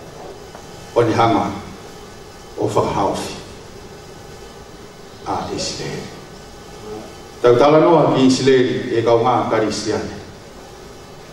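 A man speaks through a microphone in short bursts with pauses.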